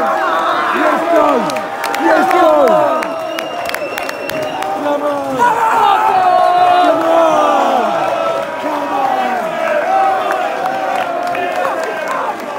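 Fans clap their hands.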